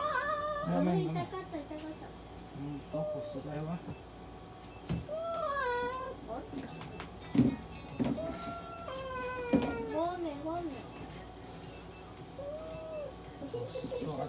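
A cat meows loudly and plaintively, close by.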